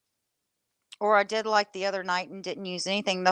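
A woman talks with animation into a microphone, close by.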